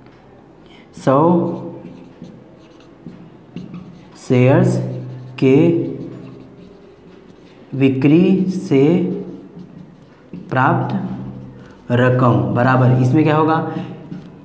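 A man speaks calmly and steadily, close by, in short bursts with pauses.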